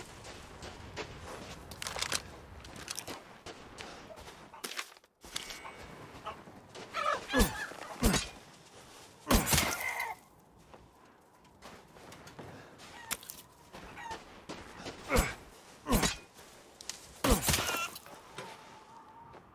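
Footsteps crunch through snow and dry grass.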